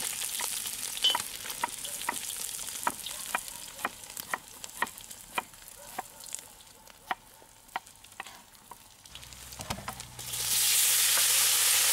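Meat sizzles and hisses in a hot pan.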